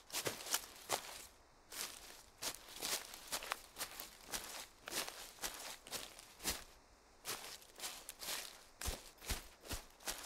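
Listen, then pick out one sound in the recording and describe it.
Footsteps rustle and swish through tall grass at a steady walking pace.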